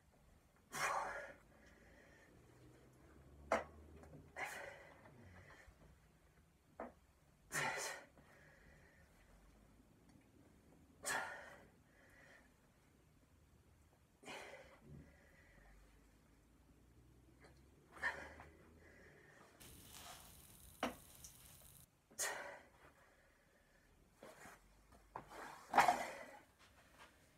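A young man exhales sharply with each lift, close by.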